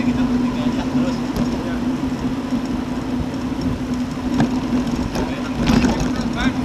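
Bicycle wheels hum on the road.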